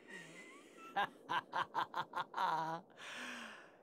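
A man chuckles menacingly.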